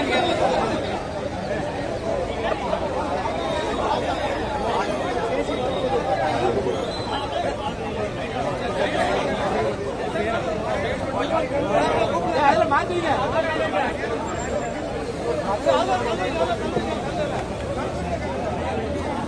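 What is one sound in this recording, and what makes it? A large crowd of men talks and shouts all at once outdoors.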